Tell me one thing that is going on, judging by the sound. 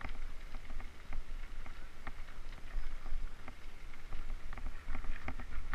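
Bicycle tyres rattle and crunch over a rocky dirt trail.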